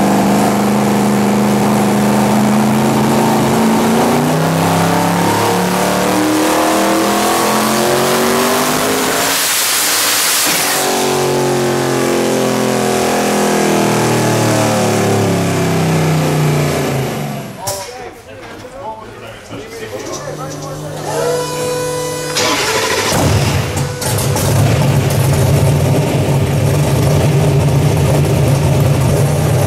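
A powerful car engine roars at high revs, climbing in pitch again and again.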